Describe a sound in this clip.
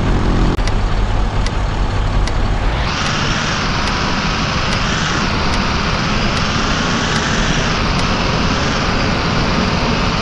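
A bus engine rumbles and revs as the bus pulls away.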